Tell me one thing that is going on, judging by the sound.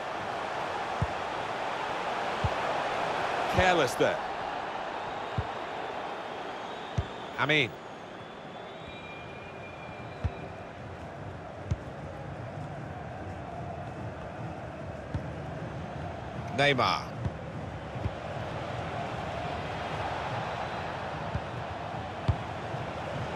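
A football is kicked with dull thuds again and again.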